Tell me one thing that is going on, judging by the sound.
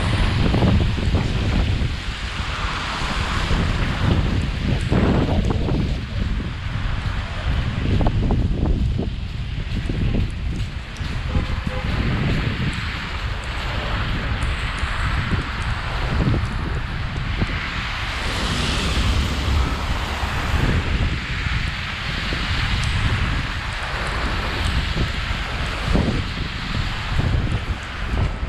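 Wind rumbles loudly outdoors.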